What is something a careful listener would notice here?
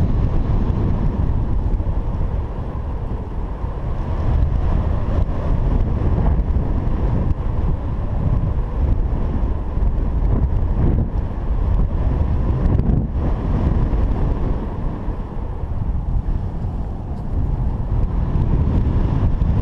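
Wind rushes and buffets loudly past a microphone in flight.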